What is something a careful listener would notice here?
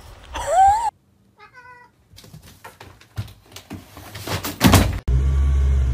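A cat's claws scrape and rustle against a cloth curtain.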